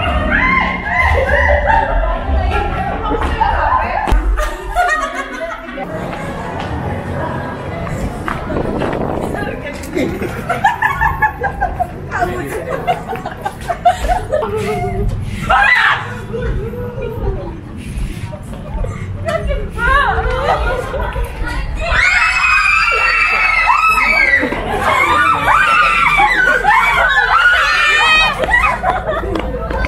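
Young women scream in fright close by.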